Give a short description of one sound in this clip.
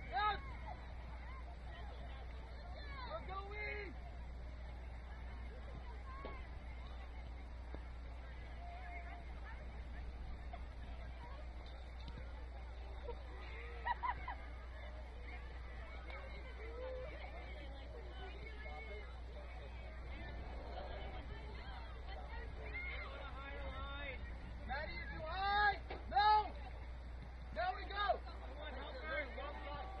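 Young players shout and call to each other outdoors across an open field.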